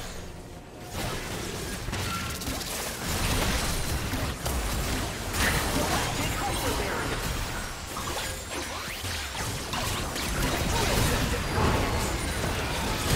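Game impacts and blasts hit repeatedly.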